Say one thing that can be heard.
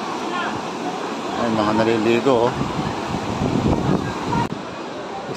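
Water rushes steadily over a weir.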